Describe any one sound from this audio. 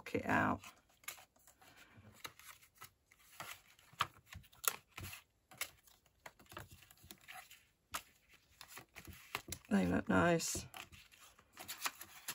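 Paper cards rustle and tap as hands fold and unfold them.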